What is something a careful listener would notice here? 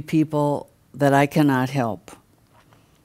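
An elderly woman speaks with animation through a microphone.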